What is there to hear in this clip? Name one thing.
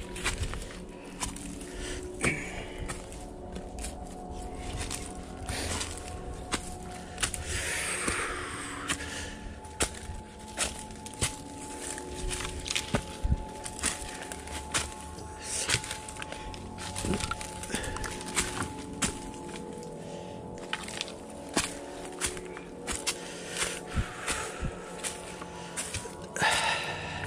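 Footsteps crunch and rustle through dry leaves at a steady pace.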